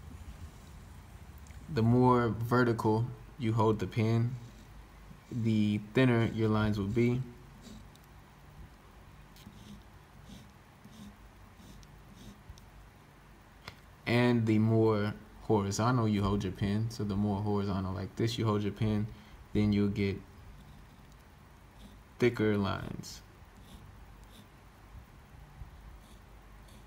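A pen nib scratches softly across paper.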